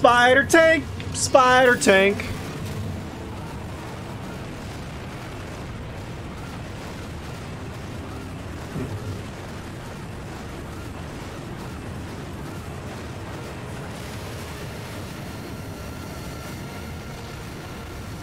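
A low mechanical rumble drones steadily.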